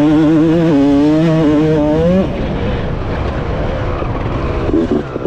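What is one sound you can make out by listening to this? A dirt bike engine revs loudly up close, then drops off as the bike shifts.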